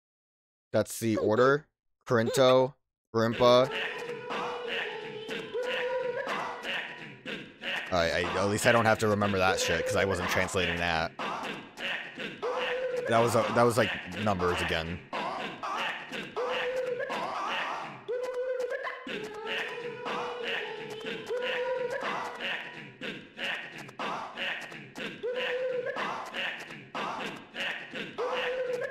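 Upbeat electronic game music plays with a bouncy rhythm.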